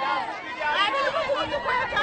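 A woman shouts out in the crowd.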